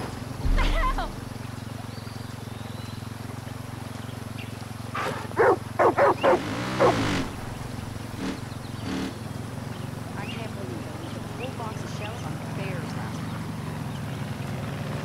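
A quad bike engine idles steadily.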